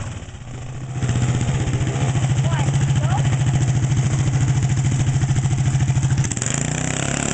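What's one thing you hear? A small engine putters loudly close by.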